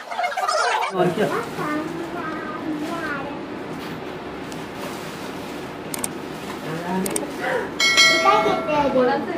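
Several women laugh and chatter nearby.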